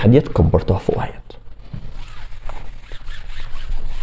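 A board eraser rubs across a board.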